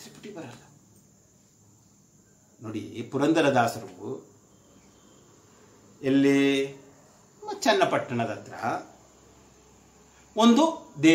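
An elderly man speaks calmly and close to a microphone, in short phrases with pauses.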